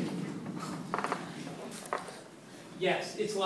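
A wheeled cart rolls across a hard floor.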